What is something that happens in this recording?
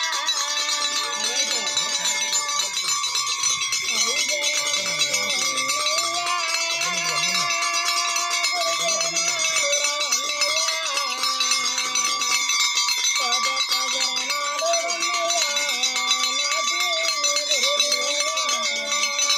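A group of women sing together in a slow, drawn-out chant.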